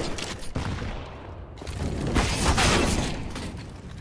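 A burning bottle whooshes through the air.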